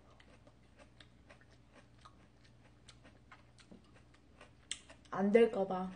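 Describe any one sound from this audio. A young woman chews food with soft, wet mouth clicks close to a microphone.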